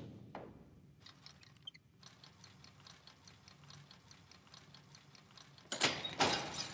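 A lock clicks and rattles as it is picked.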